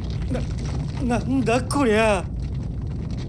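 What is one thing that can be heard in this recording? A young man exclaims in surprise.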